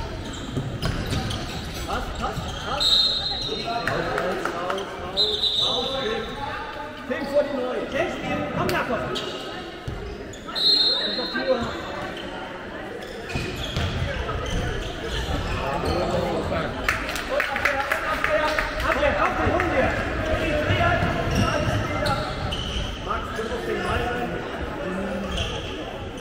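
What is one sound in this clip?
A handball bounces on a wooden floor.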